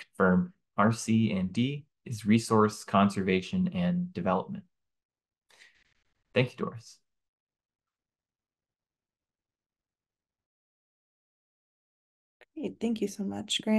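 A man speaks calmly over an online call, pausing at times.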